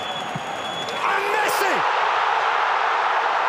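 A large crowd erupts in a loud roar of cheering.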